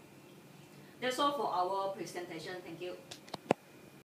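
A young woman speaks clearly nearby.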